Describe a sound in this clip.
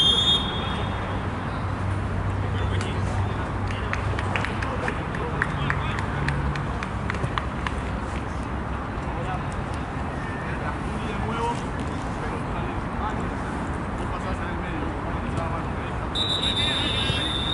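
Young men call out to each other.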